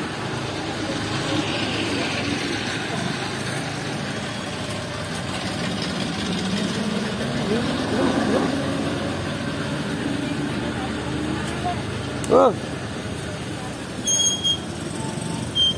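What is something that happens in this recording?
Several men talk in the background outdoors.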